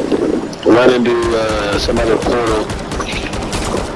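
A rifle fires in quick shots.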